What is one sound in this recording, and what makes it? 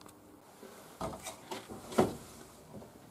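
An oven door clunks open.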